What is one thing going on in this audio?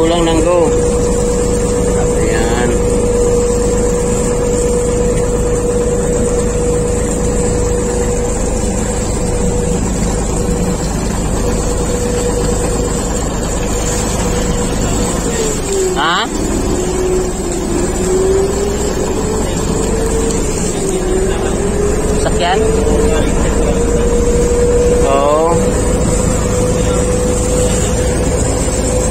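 A boat engine drones steadily close by, briefly dipping in pitch.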